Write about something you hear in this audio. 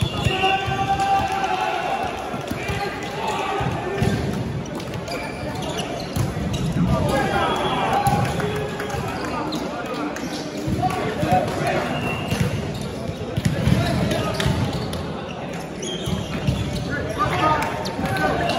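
Shoes squeak on a wooden court.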